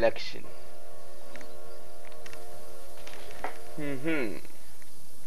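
A train whistle blows steadily, then drops in pitch and fades.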